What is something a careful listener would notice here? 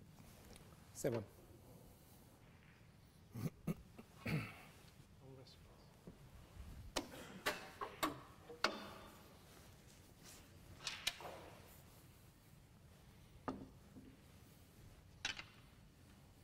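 Snooker balls click sharply against each other and the table.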